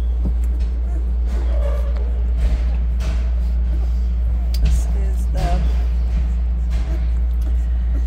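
Newborn puppies suckle with wet smacking sounds.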